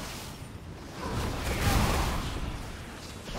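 Fire roars in a burst of flames.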